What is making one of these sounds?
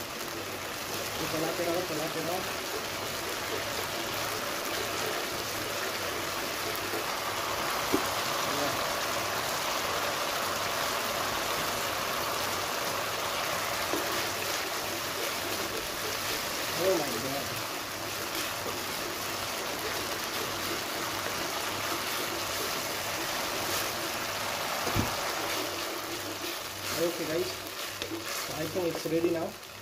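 A wooden spoon scrapes and stirs in a pan.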